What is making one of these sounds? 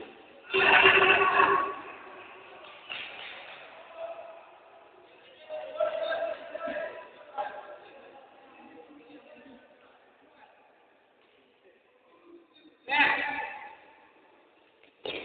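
Young men shout to each other in a large echoing hall.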